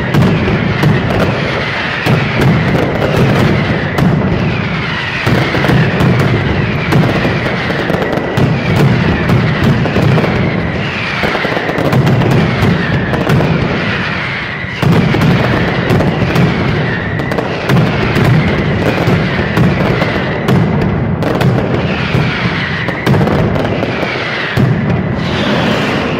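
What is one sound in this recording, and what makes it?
Whistling rockets shriek as they rise.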